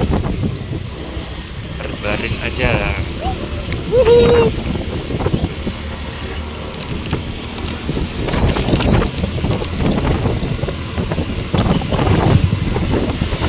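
Wind rumbles past outdoors.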